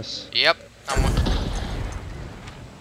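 A revolver fires a loud, booming shot.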